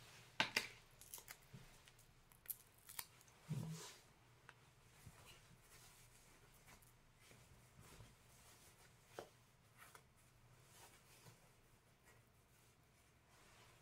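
Fingers fiddle with a small object, making soft clicks and rustles.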